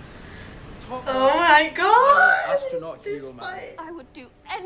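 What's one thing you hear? A young woman laughs warmly close by.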